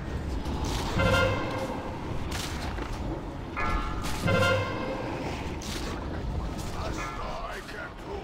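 Spell effects whoosh and chime in a game battle.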